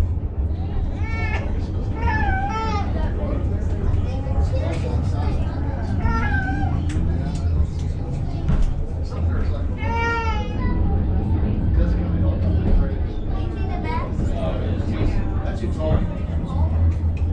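A crowd of adult passengers chatters and exclaims nearby.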